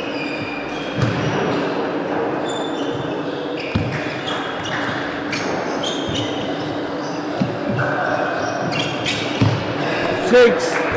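A table tennis ball clicks back and forth against paddles and the table.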